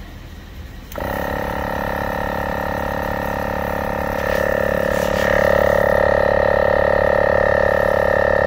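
An air compressor runs with a loud, steady drone.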